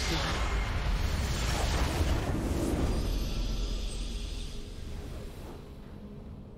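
A crystal structure shatters in a loud, rumbling explosion that slowly fades.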